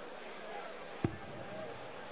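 A dart thuds into a dartboard.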